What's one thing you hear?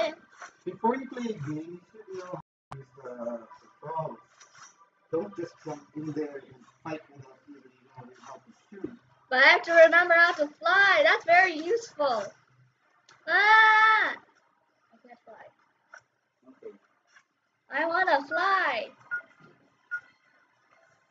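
A young girl talks with animation close to a microphone, at times in a high, sing-song voice.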